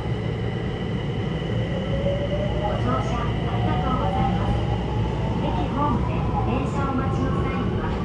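A train's electric motor whines, rising in pitch as the train speeds up.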